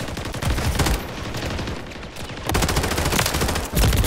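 Rifle shots fire in a quick burst.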